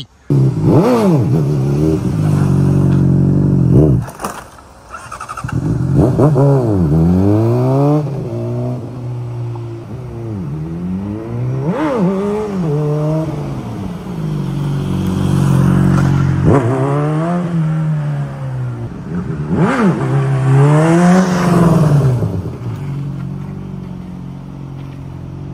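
A motorcycle engine revs loudly and shifts through gears.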